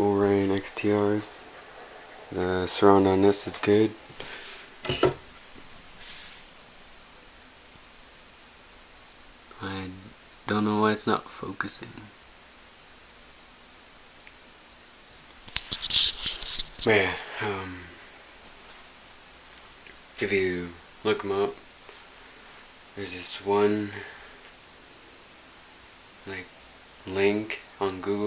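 A young man talks calmly and close by.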